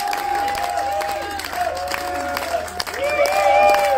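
Women sing together on stage through loudspeakers.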